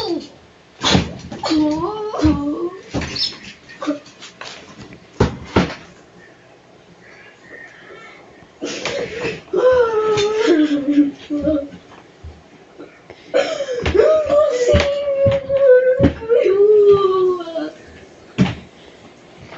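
A fist bangs on a desk.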